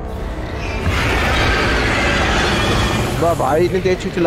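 A dragon breathes a roaring blast of fire.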